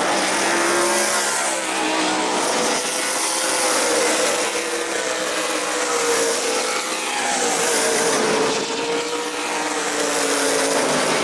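Race car engines roar loudly as they speed past on a track.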